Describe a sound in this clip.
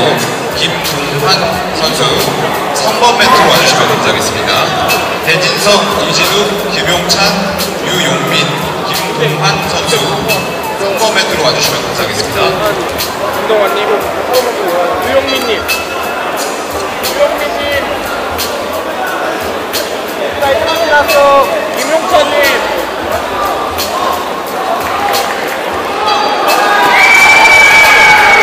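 A crowd of spectators chatters and shouts in a large echoing hall.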